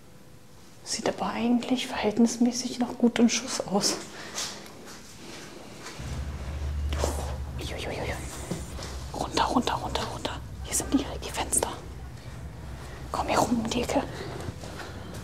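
A young woman talks with animation close to a clip-on microphone.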